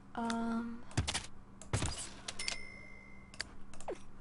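A game interface clicks as objects are placed.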